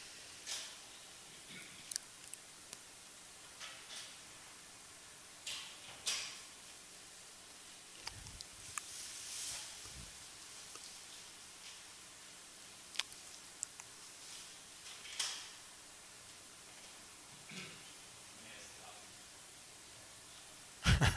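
A man speaks calmly and quietly into a microphone, with long pauses.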